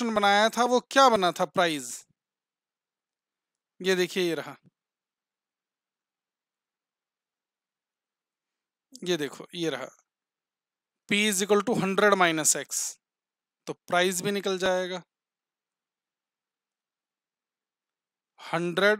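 A man speaks calmly into a close microphone, explaining in short phrases with pauses.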